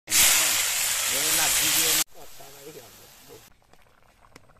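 Oil sizzles loudly in a hot pan.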